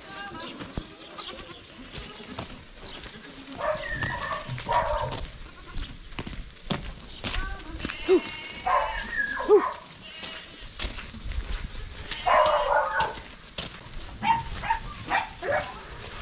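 Many hooves patter and clatter on gravel.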